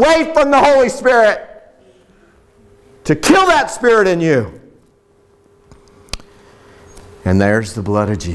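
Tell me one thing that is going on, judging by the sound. A middle-aged man speaks loudly and with animation into a microphone, with pauses.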